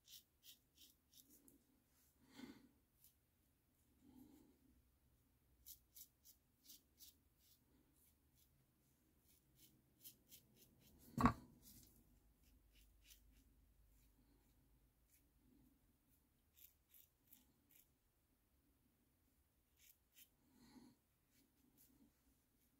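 A safety razor scrapes in short strokes through beard stubble on a lathered cheek.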